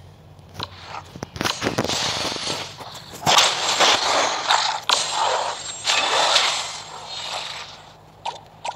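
Magic blasts whoosh and crackle in a fantasy battle.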